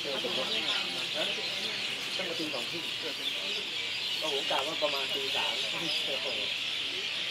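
Men and women chat casually nearby outdoors.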